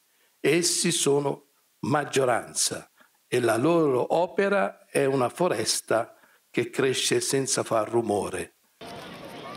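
An elderly man reads out calmly into a microphone.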